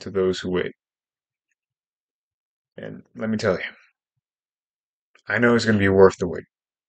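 A young man speaks calmly in short phrases, close to a microphone.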